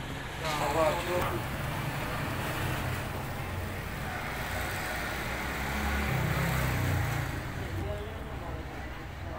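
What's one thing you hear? Pigeons coo in low, throaty murmurs close by.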